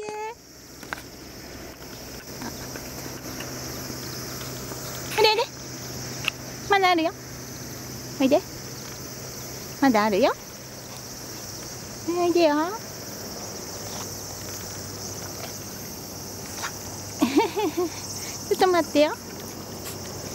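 A dog paddles through water, splashing softly.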